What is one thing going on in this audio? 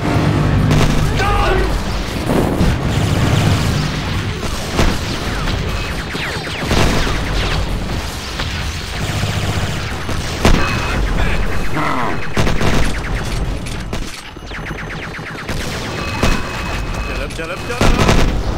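A rapid-fire gun rattles in bursts.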